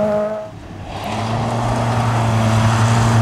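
A rally car engine roars as the car approaches.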